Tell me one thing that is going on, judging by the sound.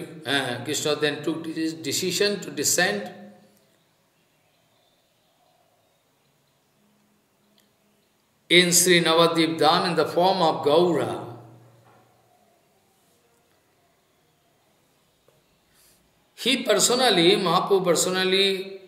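An elderly man speaks calmly into a close microphone, in phrases with long pauses.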